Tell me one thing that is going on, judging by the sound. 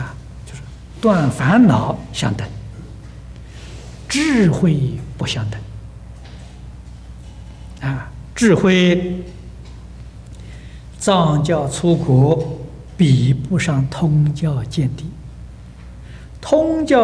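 An elderly man speaks with animation through a microphone.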